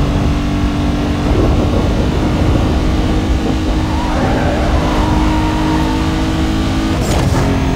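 Wind rushes past a speeding car.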